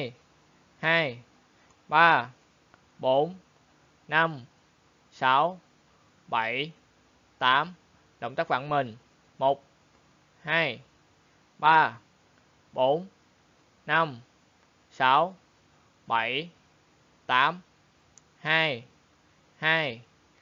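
A young man calls out short counts loudly in a steady rhythm.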